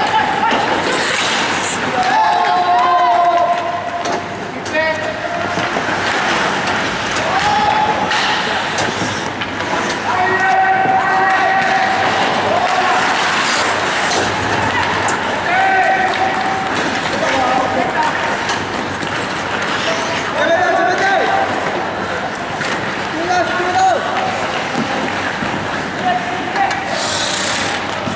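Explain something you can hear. Spectators shout and cheer nearby in an echoing rink.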